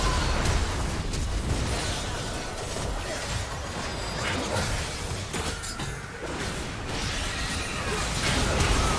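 Magic spells crackle and burst in a fast, chaotic fight.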